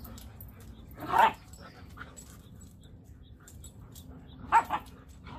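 Puppies yelp and growl while playing.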